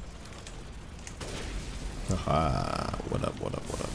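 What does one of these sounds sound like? A rifle fires with loud blasts.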